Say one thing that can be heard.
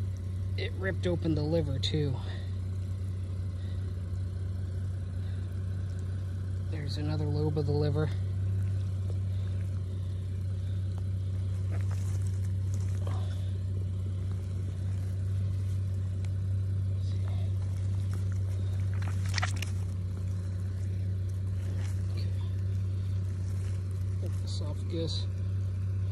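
Wet flesh squelches as a hand squeezes and pulls at it.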